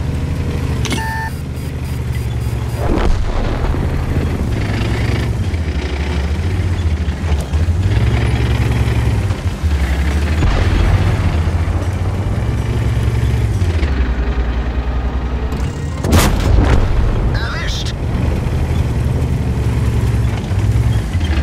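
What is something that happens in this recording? A heavy tank engine rumbles and revs as the tank drives.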